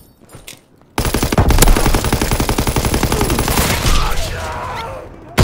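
A rifle fires in fast, loud bursts.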